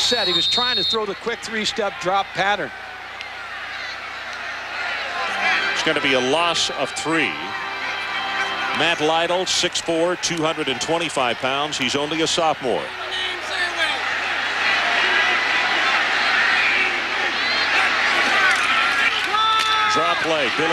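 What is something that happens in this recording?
A large crowd roars and cheers in a stadium.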